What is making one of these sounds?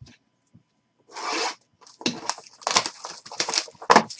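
Plastic wrapping rips as a box is slit open.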